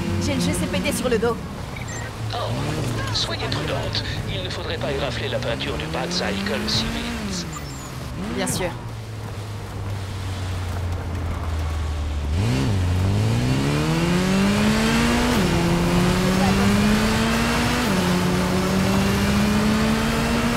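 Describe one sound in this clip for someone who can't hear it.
A motorcycle engine revs up and down, then roars higher through rising gears.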